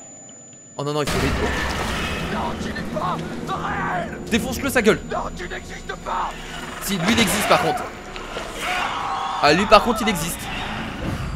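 A young man shouts in panic.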